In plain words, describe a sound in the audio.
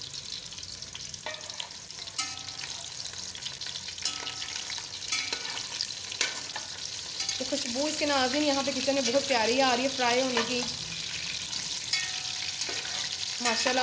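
A metal spatula scrapes against the pan.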